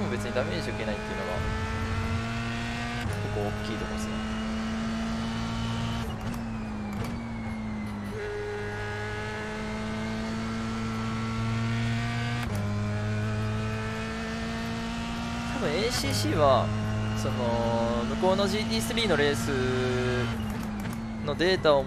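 A racing car engine revs up through the gears, with pitch climbing and dropping at each shift.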